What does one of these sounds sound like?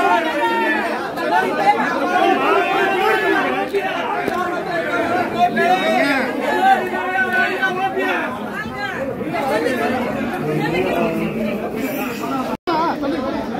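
A crowd of men talks and shouts over one another close by.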